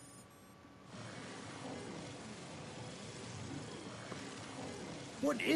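A monitor hisses loudly with static.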